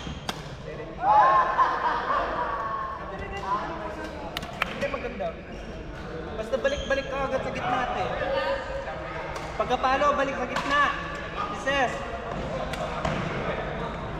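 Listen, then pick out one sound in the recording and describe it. Players call out and talk in an echoing hall.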